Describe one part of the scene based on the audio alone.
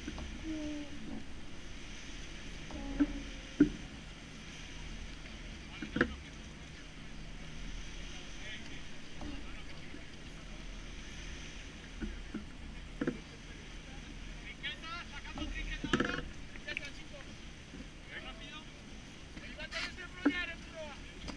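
Wind rushes steadily across open water.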